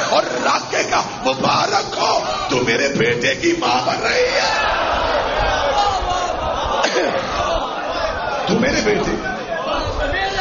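A crowd of men cry out and chant together.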